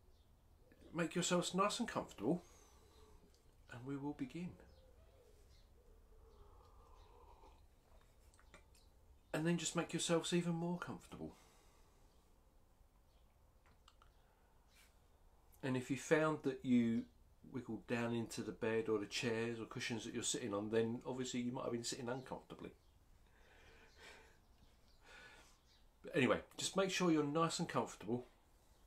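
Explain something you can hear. A man talks calmly and close by, in bursts with pauses between them.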